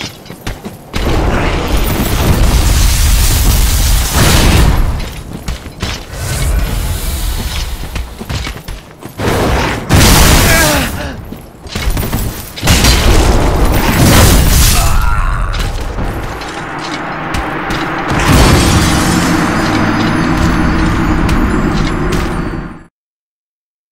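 A huge crystal creature crashes about loudly.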